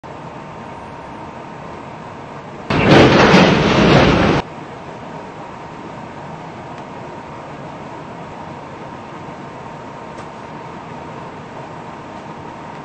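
A subway train hums steadily at a platform.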